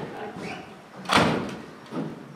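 A door bangs shut.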